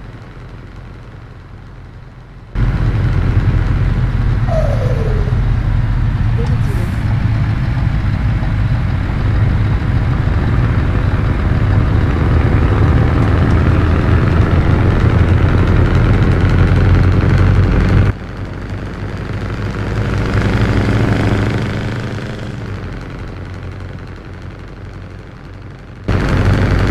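A truck engine hums steadily, louder at times and quieter at others.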